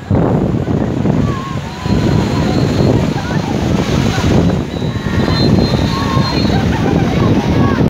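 Waves crash against a seawall.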